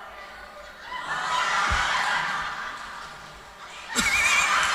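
A crowd of people laughs loudly.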